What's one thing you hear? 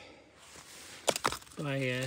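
Loose stones clack and clatter as a rock is picked up.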